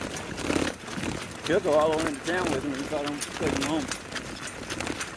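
Hooves clop steadily on a dirt road.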